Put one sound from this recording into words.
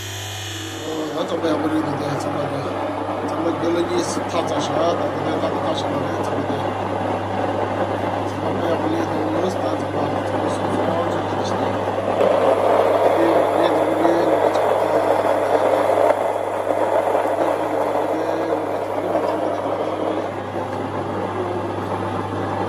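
Grain grinds in a mill with a dense, rough rasp.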